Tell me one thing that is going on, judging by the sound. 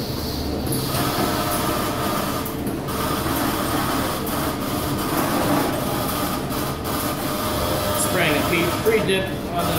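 A robotic arm whirs as it moves.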